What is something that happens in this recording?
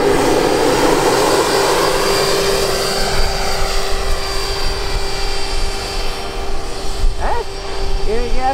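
A small propeller plane's motor whines steadily as it flies overhead.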